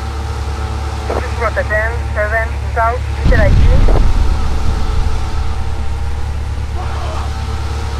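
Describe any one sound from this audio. Motorbike engines rumble steadily in the distance.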